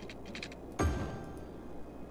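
A soft thud sounds as a game piece is placed.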